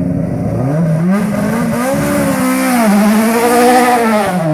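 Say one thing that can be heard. A race car engine revs loudly up and down, close by.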